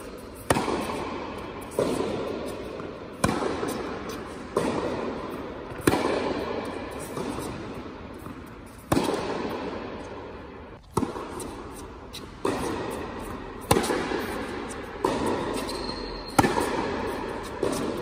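A tennis ball is struck with a racket, echoing in a large indoor hall.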